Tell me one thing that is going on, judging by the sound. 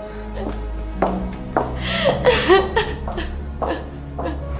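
A young woman sobs and cries.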